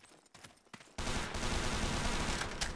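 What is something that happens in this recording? Footsteps run over gravel.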